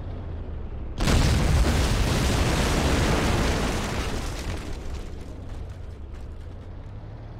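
A tank cannon fires with a loud blast that roars and slowly fades.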